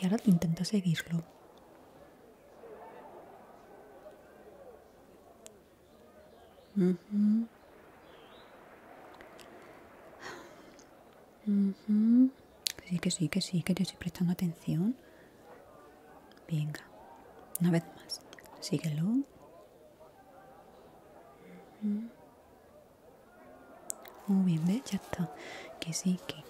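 A young woman speaks softly and closely into a microphone, in short bursts with pauses.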